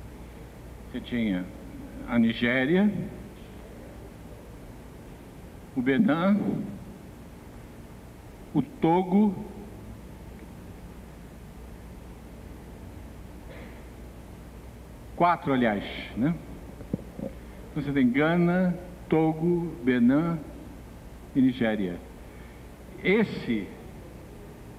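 An elderly man speaks calmly through a microphone, in short bursts with pauses.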